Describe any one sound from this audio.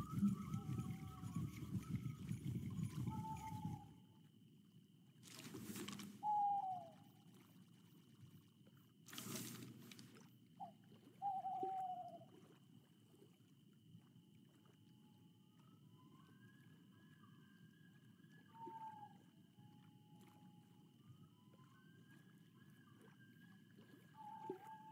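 Water laps softly.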